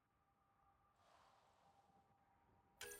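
A game menu gives a soft whoosh as a window closes.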